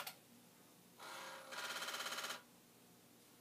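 A floppy disk drive whirs and buzzes briefly.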